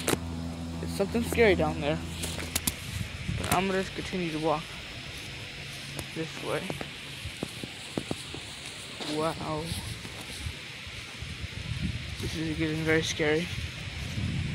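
A boy speaks close by in short bursts.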